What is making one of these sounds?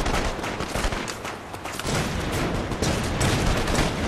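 Footsteps run quickly across cobblestones.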